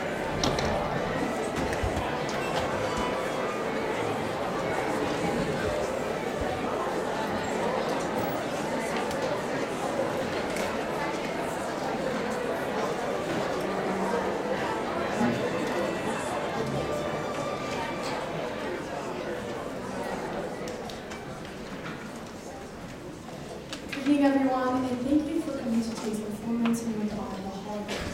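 An orchestra of strings and winds plays in a large hall.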